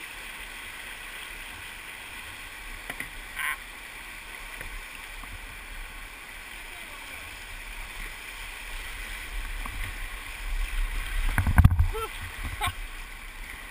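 White water rushes steadily over rocks close by.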